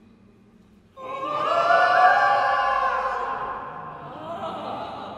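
A young woman sings out powerfully in a large echoing hall.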